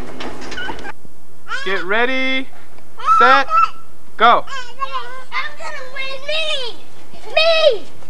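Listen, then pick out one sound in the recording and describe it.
Young children shout and squeal loudly outdoors.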